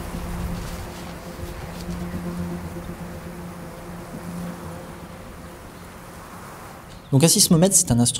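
Footsteps swish through grass outdoors.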